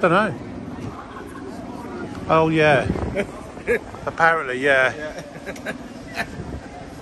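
Several men and women chat in a crowd outdoors.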